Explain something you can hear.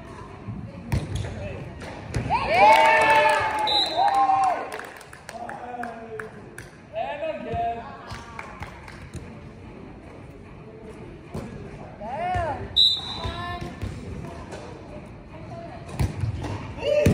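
A volleyball thumps off hands.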